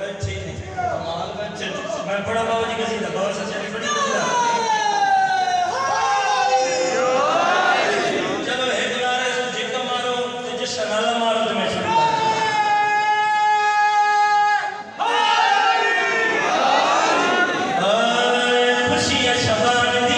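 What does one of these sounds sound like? A young man chants loudly and mournfully through a loudspeaker in an echoing hall.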